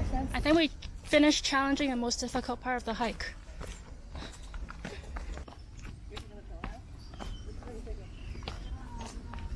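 Footsteps crunch on a dry, stony path.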